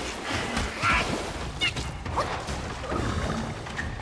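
Water splashes as a figure moves through it.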